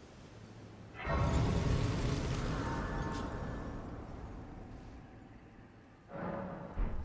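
A shimmering magical chime swells and slowly fades.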